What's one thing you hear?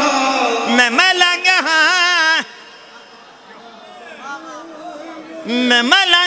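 A man chants loudly and melodically through a microphone and loudspeakers.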